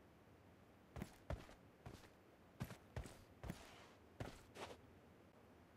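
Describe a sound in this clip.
Footsteps of a game character scuff over rock.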